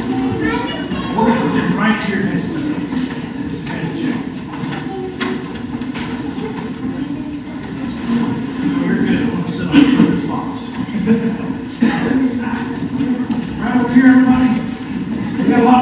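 Adults and children chatter together nearby.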